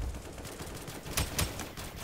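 A rifle fires a rapid burst of gunshots.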